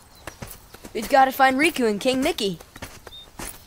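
A teenage boy speaks eagerly close by.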